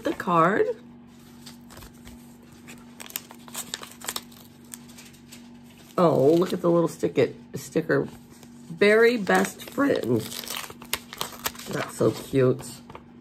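Paper rustles and crinkles as an envelope is handled.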